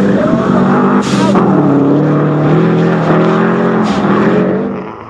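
A rally car engine pops and crackles between gears.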